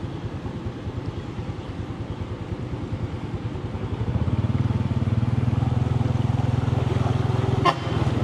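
Motorbike engines putter nearby.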